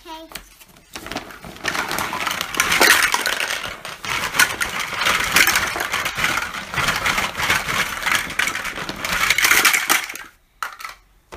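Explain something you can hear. A plastic bag rustles and crinkles loudly as it is shaken.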